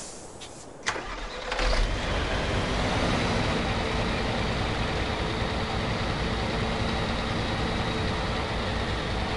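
A truck engine roars and rumbles loudly.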